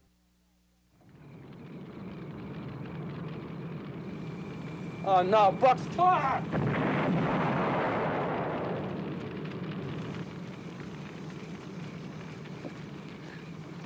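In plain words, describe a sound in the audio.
A car burns with a steady roar of flames.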